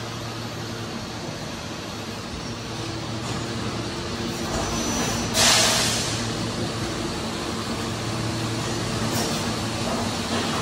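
A large machine hums and whirs steadily.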